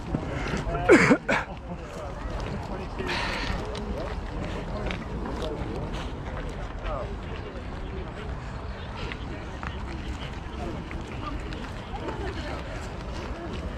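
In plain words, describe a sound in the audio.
Footsteps of runners patter on a paved path.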